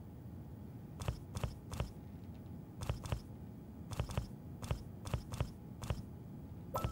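Short soft clicks come one after another in quick succession.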